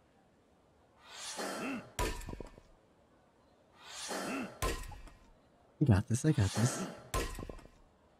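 An axe swings through the air with a whoosh.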